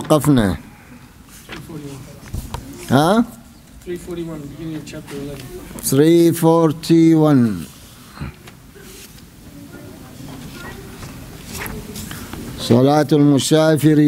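An elderly man speaks slowly into a microphone, chanting some words in a drawn-out voice.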